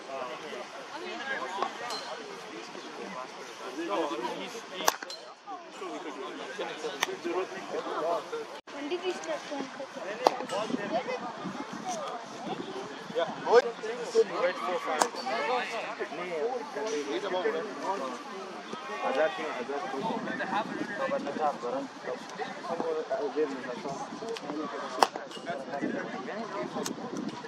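Men talk calmly nearby outdoors.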